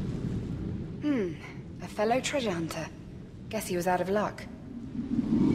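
A magical burst shimmers and rings with sweeping tones.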